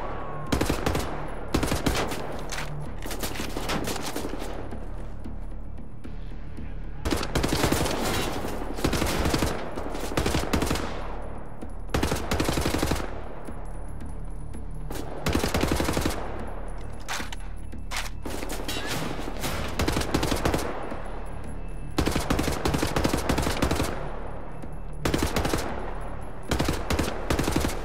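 A heavy machine gun fires in loud, rapid bursts.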